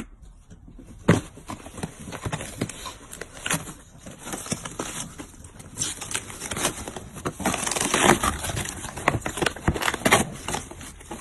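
A dog scratches and tears at a cardboard box, the cardboard rustling and ripping.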